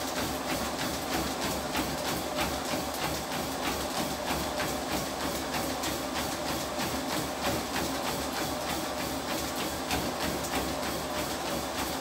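A man breathes heavily while running.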